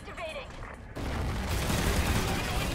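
Gunfire bursts rapidly and loudly.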